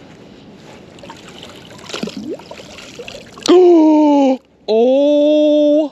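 Water splashes as a heavy object is pulled up out of a river.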